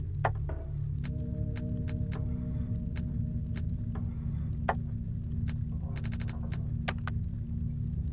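Menu cursor blips click sharply as options change.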